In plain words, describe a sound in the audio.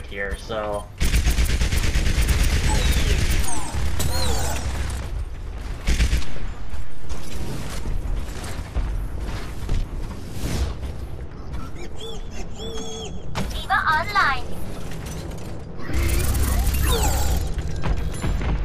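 A rapid gun fires bursts of loud shots.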